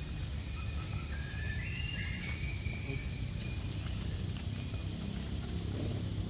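Small monkeys patter across dry leaves.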